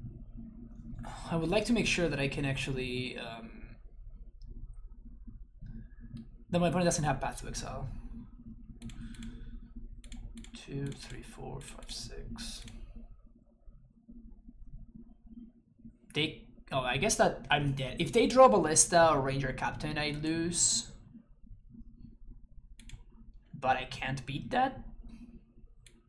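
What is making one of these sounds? A young man talks casually into a close microphone, in bursts with pauses.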